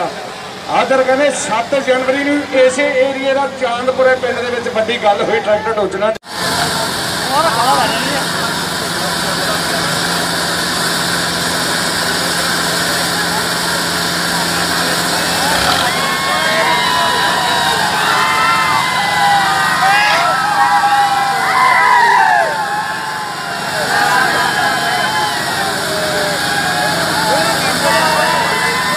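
Tractor engines roar and strain under load.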